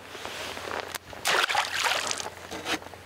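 A fish splashes into river water.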